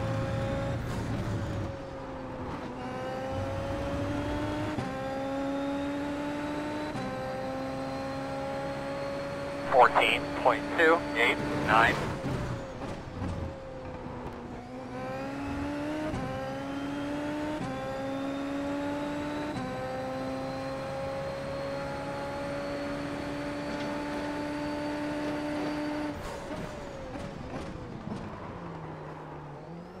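A racing car engine revs high, shifting up through the gears and dropping on braking.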